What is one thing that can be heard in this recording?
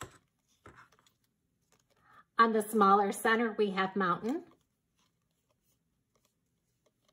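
Stiff paper rustles softly as it is folded and handled.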